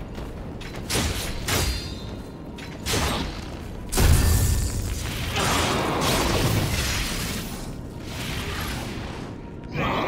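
Heavy blows strike in a fight.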